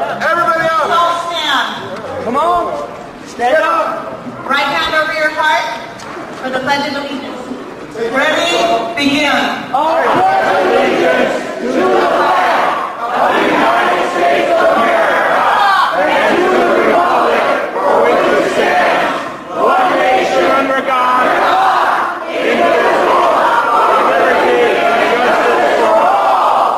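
A woman speaks loudly and with animation through a microphone in a large echoing hall.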